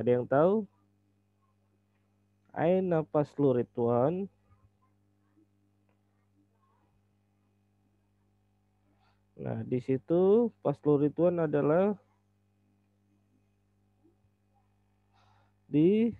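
A man speaks calmly through a microphone, pausing between phrases.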